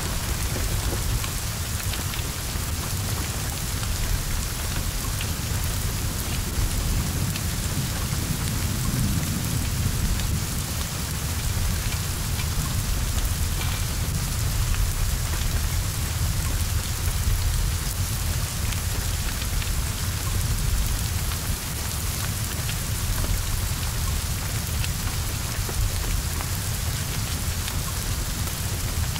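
Flames roar and crackle.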